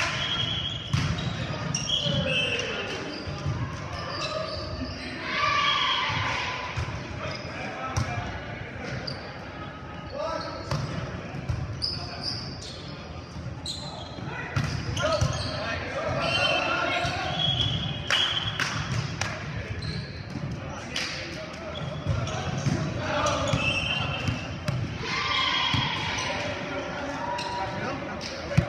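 Young men shout and call to each other in a large echoing gym.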